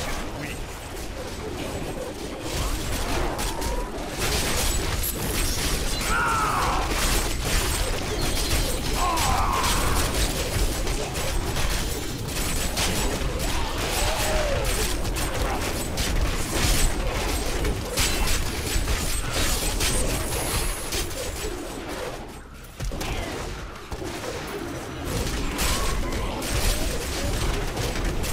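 Game combat sounds of blows, blasts and impacts clash rapidly and constantly.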